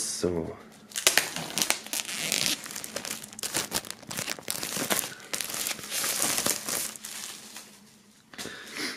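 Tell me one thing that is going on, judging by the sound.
Plastic wrap crinkles and rustles as hands peel it away.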